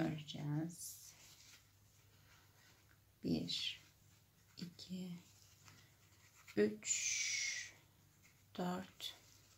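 Yarn rustles softly as it is pulled through knitted fabric.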